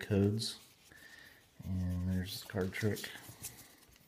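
Playing cards rustle and slide against each other.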